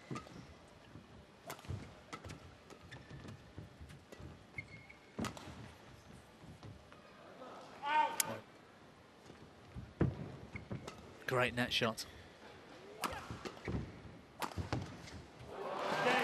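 A shuttlecock is struck sharply by rackets in a fast rally.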